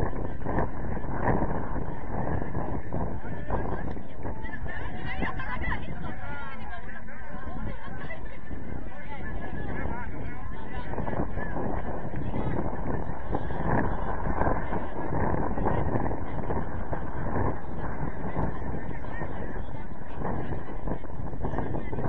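A crowd of spectators chatters in the distance outdoors.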